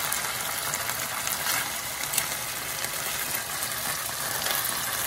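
A spatula scrapes and clicks against a frying pan.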